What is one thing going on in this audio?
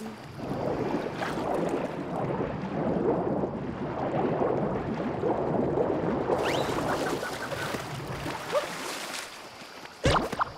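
Water bubbles and churns as a swimmer paddles underwater.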